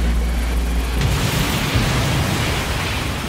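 A loud explosion roars and crackles.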